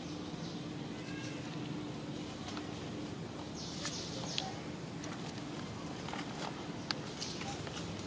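A monkey's feet rustle dry leaves on the ground.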